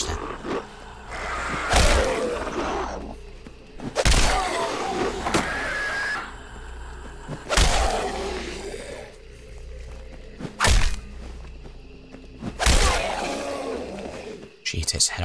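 Creatures snarl and shriek as they charge.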